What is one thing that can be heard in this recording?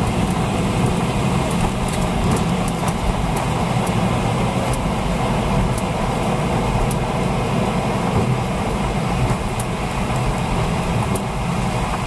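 A jet engine roars steadily inside an airliner cabin as it rolls along a runway.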